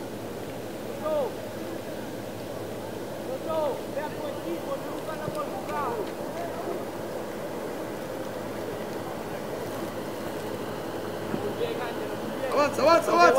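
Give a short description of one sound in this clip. Young men shout to each other across an open field, far off.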